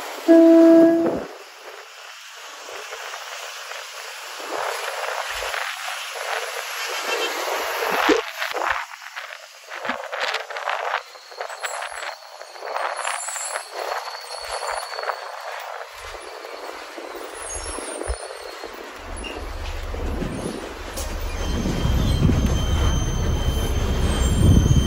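Wind rushes past an open window of a moving bus.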